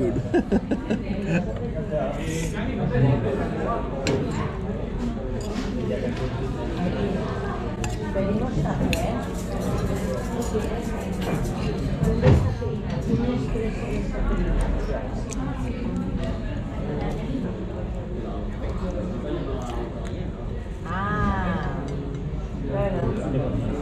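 Diners murmur and chatter in the background.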